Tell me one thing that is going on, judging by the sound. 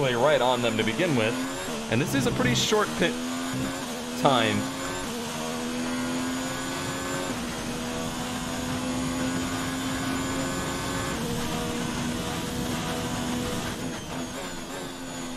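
A racing car engine screams at high revs, rising in pitch and dropping sharply with each gear change.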